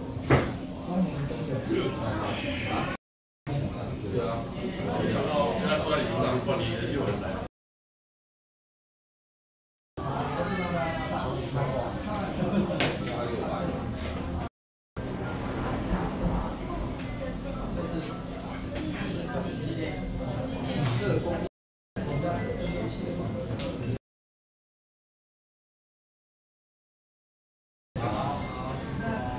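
Several men and women talk at once nearby in a room.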